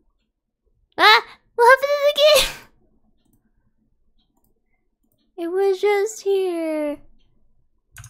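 A young woman speaks animatedly in short bursts, close to a microphone.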